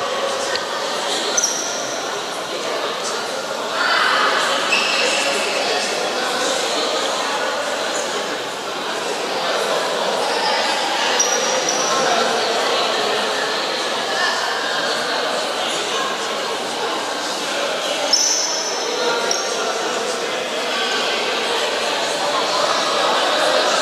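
Many voices chatter and call out in a large echoing hall.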